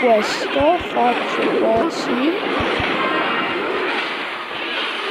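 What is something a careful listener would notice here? Game sound effects of a battle clash and chime rapidly.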